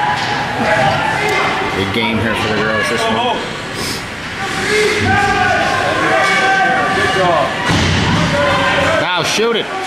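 Children shout and call out in a large echoing hall.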